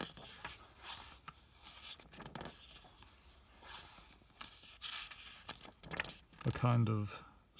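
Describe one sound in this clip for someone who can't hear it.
Paper pages rustle and crinkle as a book page is turned.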